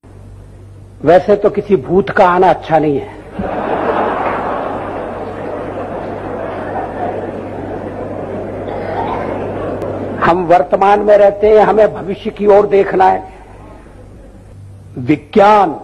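An elderly man speaks with emphasis into a microphone, heard over a loudspeaker.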